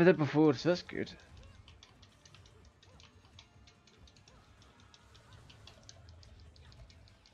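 Swords clash and clang repeatedly in a fight.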